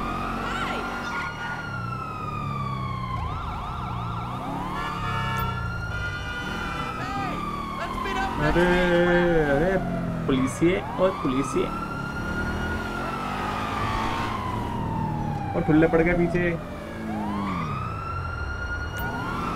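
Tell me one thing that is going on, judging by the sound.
A car engine hums steadily as a car drives.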